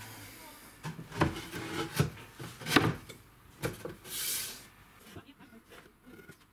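A wooden panel knocks and taps against a wooden frame.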